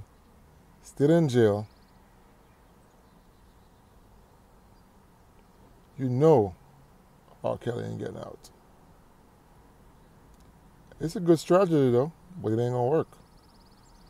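A man speaks close up in short bursts with long pauses.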